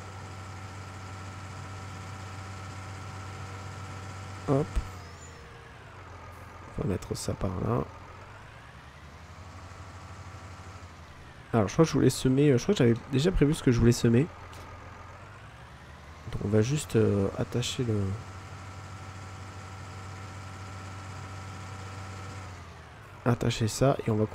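A tractor engine hums steadily and changes pitch as it slows and speeds up.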